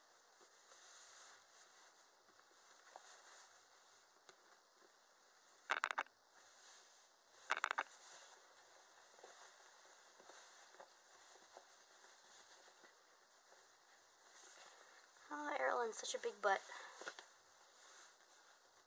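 Soft fabric rustles as clothes are handled.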